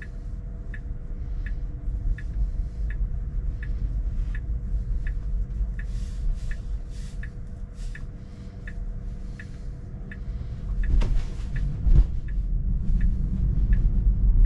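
A car's turn signal ticks at an even pace.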